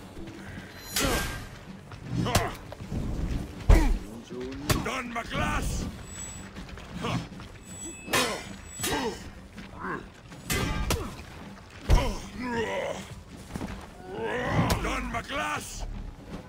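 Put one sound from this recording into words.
Steel blades clash and clang in quick, sharp strikes.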